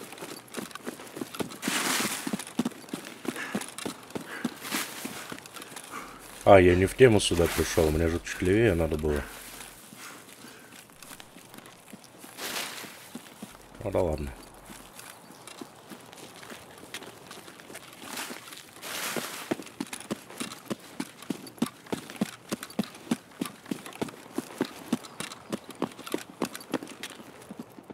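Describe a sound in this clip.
Footsteps crunch steadily over grass and gravel.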